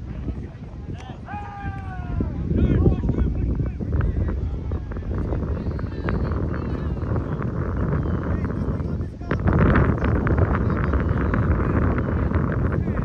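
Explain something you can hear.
Young men shout to each other in the distance.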